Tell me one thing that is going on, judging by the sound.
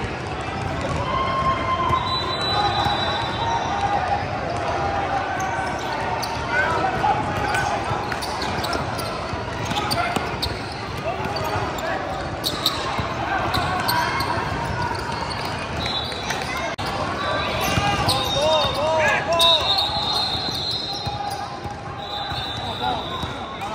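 Players call out to each other from across the court.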